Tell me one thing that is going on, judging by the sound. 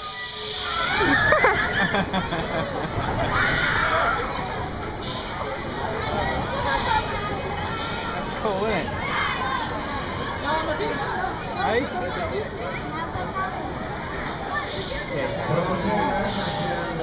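A crowd of young riders screams on an amusement ride, heard from a distance outdoors.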